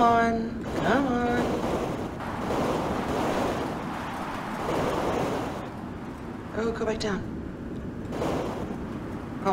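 A young woman talks calmly into a headset microphone.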